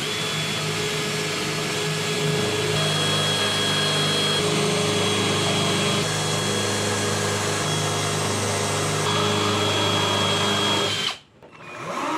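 A cordless drill whirs steadily as it bores into wood.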